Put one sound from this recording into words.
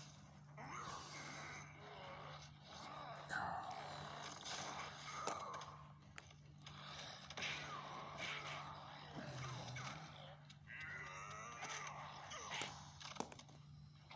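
Plastic toy figures clack and rattle as they are handled.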